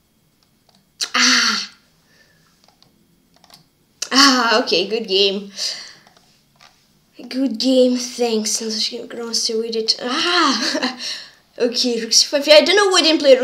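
A boy speaks with animation close to a microphone.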